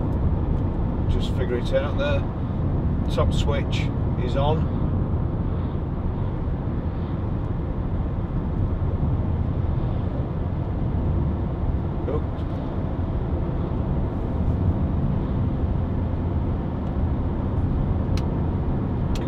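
A car engine hums and rumbles steadily, heard from inside the car.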